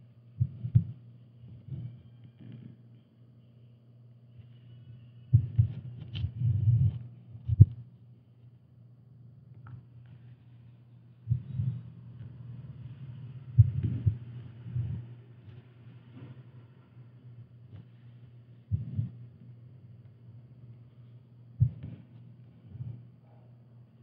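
Thread is pulled through taut fabric with a soft rasp.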